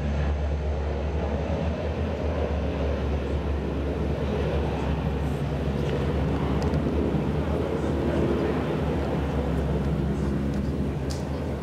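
Water rushes along the hull of a moving ship.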